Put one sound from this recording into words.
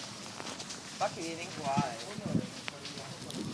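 A young boy shouts and calls out nearby.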